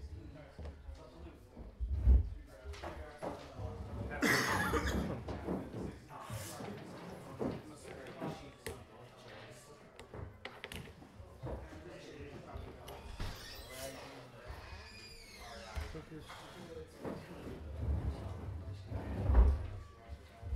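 Plastic game pieces click and tap on a table.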